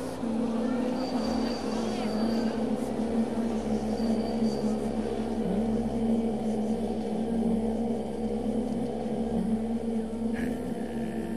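A crowd of people murmurs and chatters nearby.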